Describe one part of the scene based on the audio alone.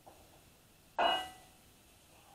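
A metal bowl clanks against a pot.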